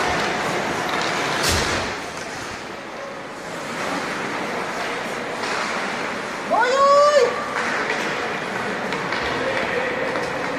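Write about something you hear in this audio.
Skates scrape across ice in a large echoing rink.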